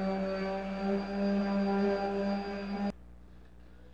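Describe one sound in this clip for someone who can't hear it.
A power sander whirs loudly against wood, then stops.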